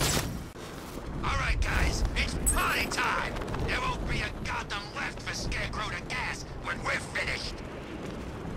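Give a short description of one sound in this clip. Wind rushes past loudly during a fast glide.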